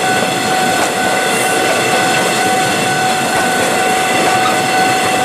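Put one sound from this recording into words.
A passenger train rushes past close by with a loud, steady rumbling roar.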